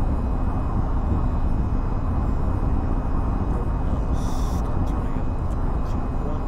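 A jet engine idles with a deep, steady rumble.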